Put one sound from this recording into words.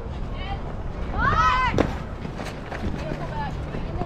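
A bat strikes a softball with a sharp crack.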